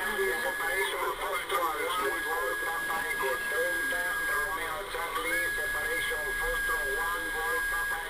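A high, steady whistle tone from a radio receiver cuts in and out.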